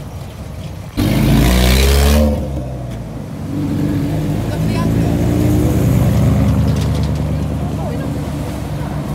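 A truck engine revs hard nearby.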